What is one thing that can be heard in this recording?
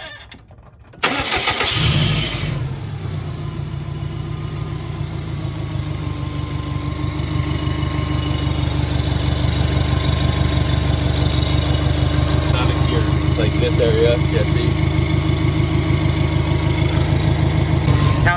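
A car engine idles steadily with a rhythmic rumble.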